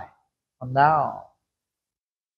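A man speaks briefly and cheerfully into a close microphone.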